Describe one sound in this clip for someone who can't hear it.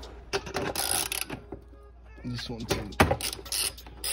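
A ratchet wrench clicks as it turns a bolt.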